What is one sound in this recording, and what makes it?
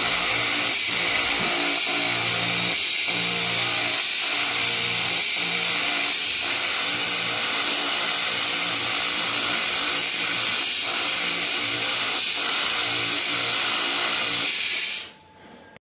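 A laser cutter's fan roars steadily.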